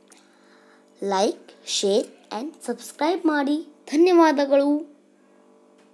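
A young boy speaks in a high, sing-song voice close to the microphone.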